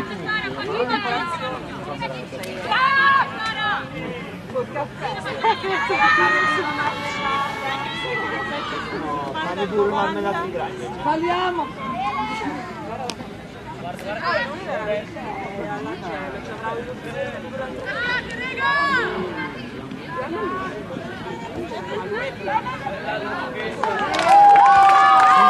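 Young women shout and cheer excitedly nearby, outdoors.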